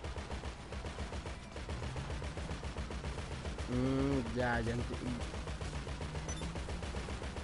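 A turret machine gun fires in bursts.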